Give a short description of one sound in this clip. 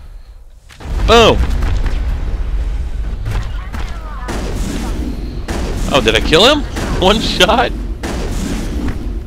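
An energy blast crackles and booms.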